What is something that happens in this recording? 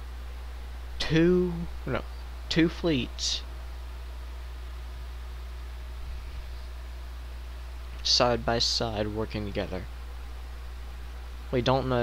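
A young man talks with animation into a close headset microphone, in short bursts.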